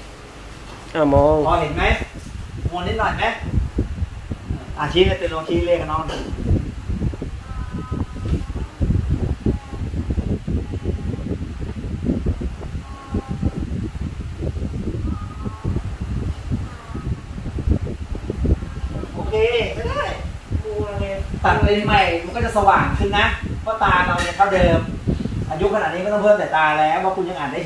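A young woman speaks calmly close by.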